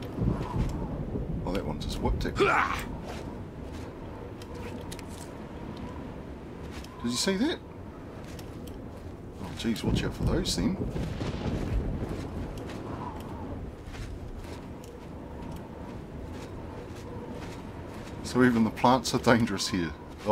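Footsteps crunch on rocky ground.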